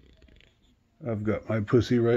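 A man speaks softly, close by.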